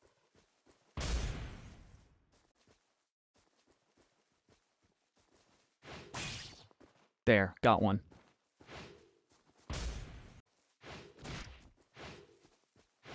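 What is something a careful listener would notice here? A sword swishes through the air in quick swings.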